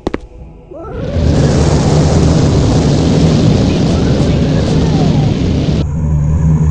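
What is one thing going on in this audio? Flames roar and hiss loudly.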